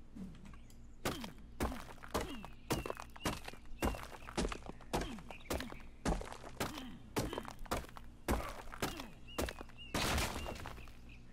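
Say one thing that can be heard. A stone pick strikes rock again and again in quick, sharp knocks.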